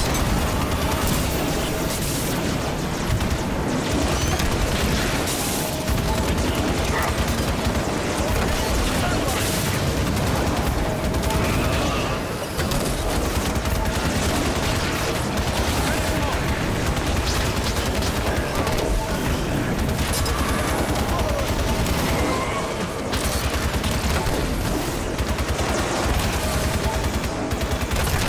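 A futuristic energy weapon fires in bursts.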